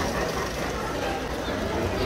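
A toy train rattles along its track.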